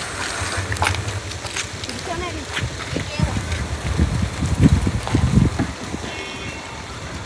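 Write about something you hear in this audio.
Several adults talk nearby.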